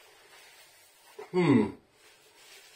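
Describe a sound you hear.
A man blows his nose into a tissue.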